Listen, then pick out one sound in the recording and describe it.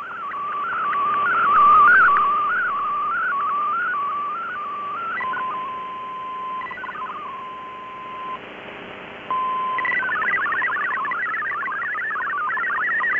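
A shortwave radio receiver plays warbling digital data tones.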